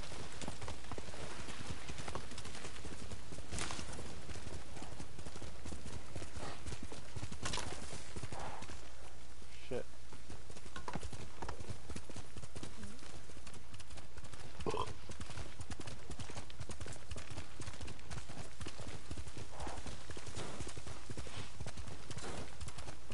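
Horse hooves thud steadily as a horse gallops.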